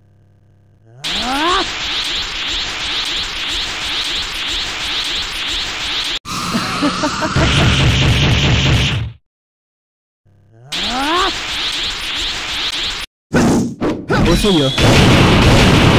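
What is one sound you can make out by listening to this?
A charged energy blast hums and whooshes.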